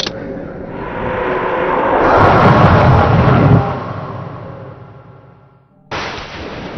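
Water rushes and splashes loudly, then fades.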